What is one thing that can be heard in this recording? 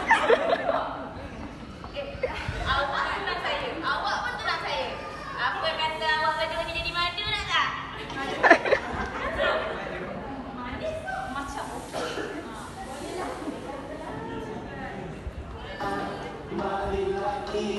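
A group of women talk and call out together, close by, in an echoing hall.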